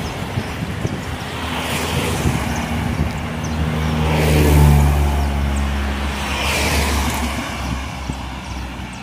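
More cars swish past on the road.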